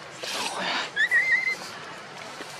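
A baby monkey gives a short, high squeak.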